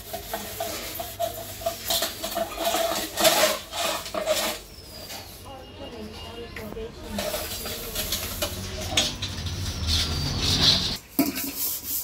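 A woman scrubs a metal plate with a rough, rasping sound.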